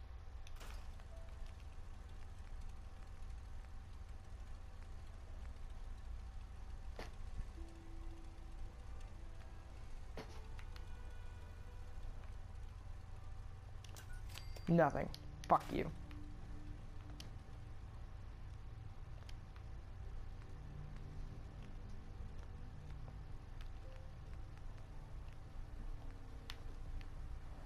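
Soft game menu clicks tick now and then as items are browsed.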